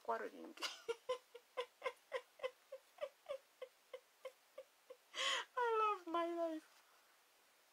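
A middle-aged woman laughs.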